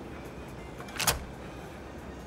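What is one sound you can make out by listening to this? A pistol is set down with a metallic clack.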